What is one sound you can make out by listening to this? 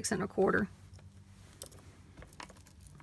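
Beaded metal charms clink softly as they are slid across cloth.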